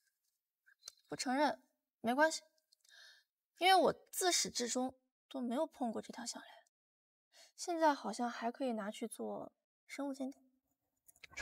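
A young woman speaks tensely up close.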